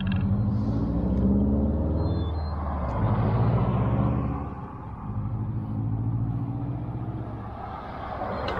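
A car engine hums as a car drives past close by.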